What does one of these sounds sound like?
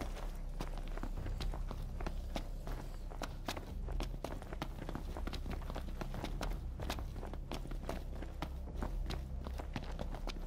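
Quick footsteps run up hard stone steps.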